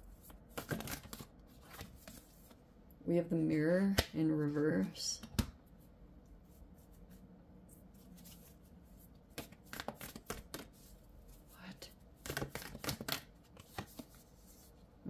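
Stiff cards shuffle and rustle in hands.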